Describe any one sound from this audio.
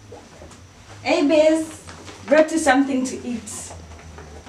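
A second young woman speaks in reply close by.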